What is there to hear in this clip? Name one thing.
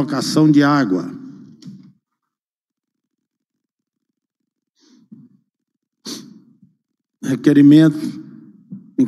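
A man speaks calmly into a microphone in short bursts, with pauses between.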